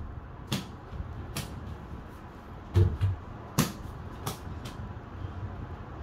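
A small ball thuds against a toy hoop's backboard and bounces.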